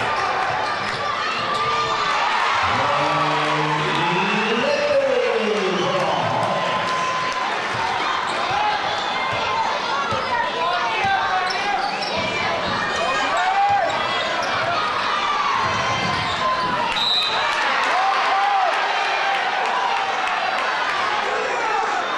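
A large crowd murmurs and cheers in a big echoing gym.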